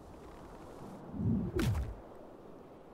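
A deep whoosh rushes past as a creature takes off in flight.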